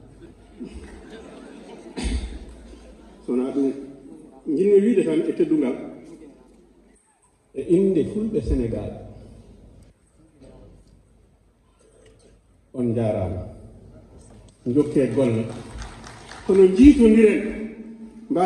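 A man speaks with animation into a microphone over loudspeakers in a large hall, pausing between phrases.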